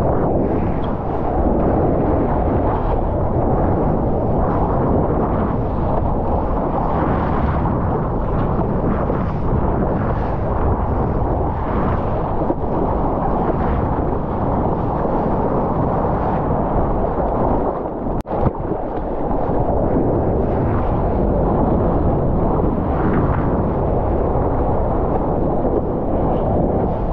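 Wind and rushing seawater roar close to the microphone.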